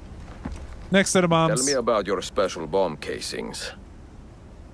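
A young man asks a question calmly.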